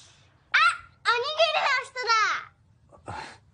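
A young boy calls out excitedly, close by.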